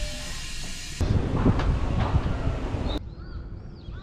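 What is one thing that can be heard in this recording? An escalator hums and rattles steadily.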